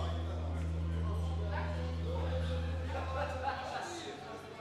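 Music with a deep bass plays loudly through speakers in a large echoing hall, then stops.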